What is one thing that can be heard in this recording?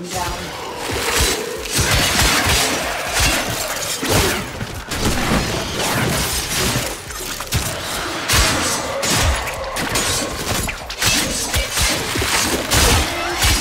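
Blades clang and slash in close combat.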